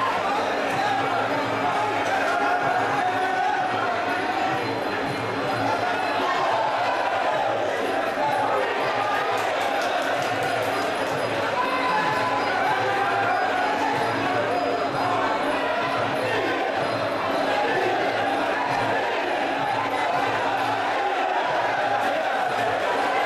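A large crowd cheers and chants loudly in a big echoing hall.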